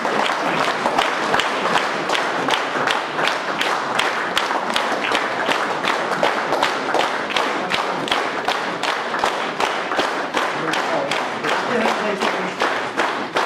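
A crowd claps along in a steady rhythm in an echoing hall.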